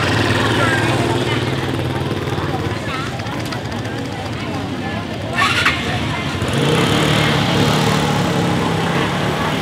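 Motorbike engines hum as they ride past.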